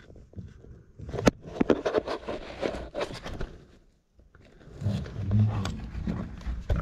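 Gear scrapes and knocks against rock close by.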